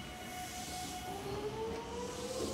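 An electric train's motor whines, rising in pitch as it pulls away.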